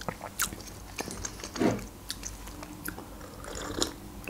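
A woman sips a drink close to a microphone.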